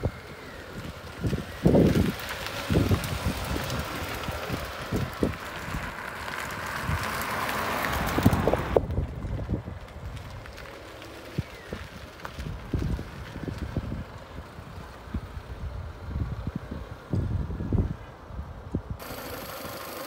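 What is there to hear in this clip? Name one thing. A car engine runs as a car drives slowly over a rough surface.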